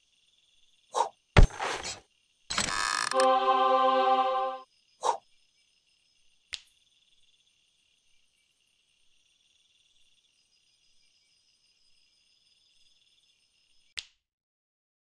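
Game buttons click.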